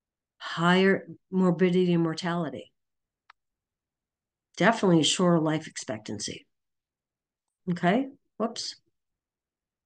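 A woman speaks calmly over an online call, in short phrases with pauses.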